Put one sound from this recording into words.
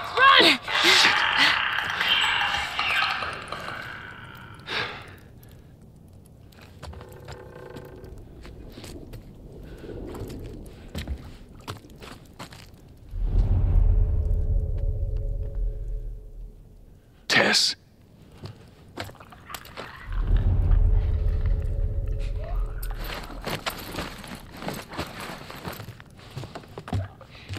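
Footsteps creak and thud on old wooden floorboards.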